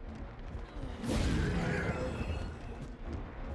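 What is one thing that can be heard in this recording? A sudden fiery whoosh bursts out and fades.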